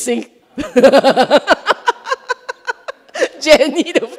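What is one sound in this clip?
A middle-aged woman laughs into a microphone.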